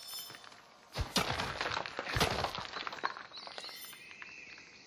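Rocks crumble and clatter apart.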